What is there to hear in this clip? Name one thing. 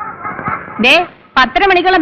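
A woman speaks sharply.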